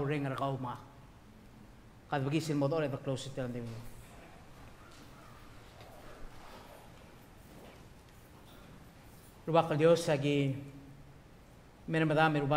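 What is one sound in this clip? A middle-aged man speaks slowly and solemnly into a microphone, with long pauses.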